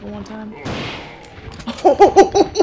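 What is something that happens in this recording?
A shotgun fires loudly.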